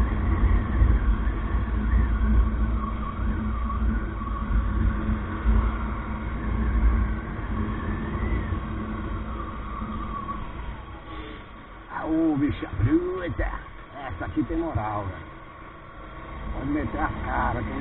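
Wind buffets a microphone while riding.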